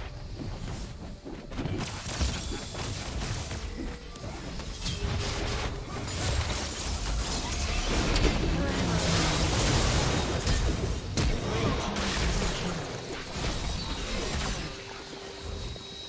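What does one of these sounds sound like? Magic blasts crackle and whoosh in a fast game fight.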